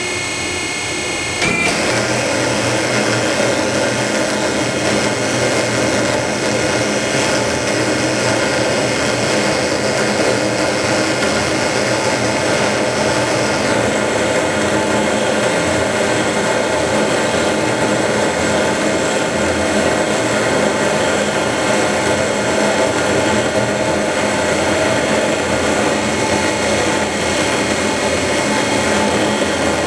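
A large machine hums and whirs steadily as a heavy tyre turns.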